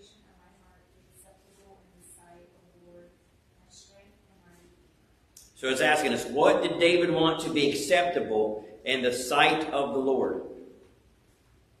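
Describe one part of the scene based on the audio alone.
A middle-aged man speaks calmly into a microphone, at times loudly.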